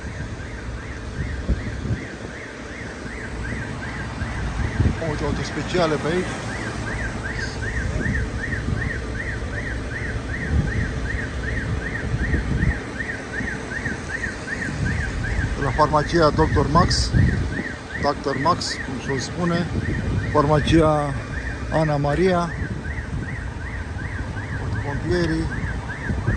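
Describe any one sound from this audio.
A siren wails in a fast, steady warble nearby.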